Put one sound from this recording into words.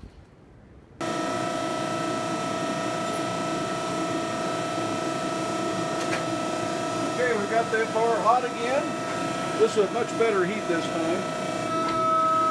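A power hammer's motor hums steadily.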